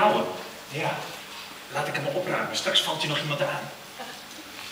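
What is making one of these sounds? A man speaks loudly on a stage in a large hall.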